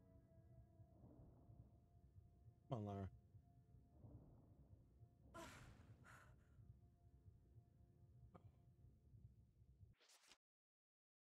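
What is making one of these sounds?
Game sound effects thud and rumble as a character falls.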